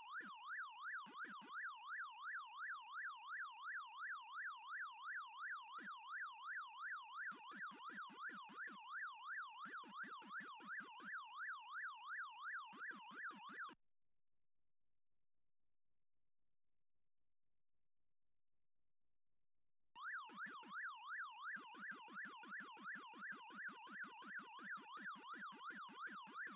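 A video game siren warbles steadily up and down.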